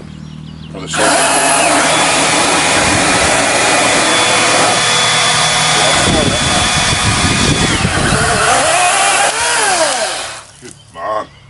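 A small cordless chainsaw whines loudly as it cuts through a branch.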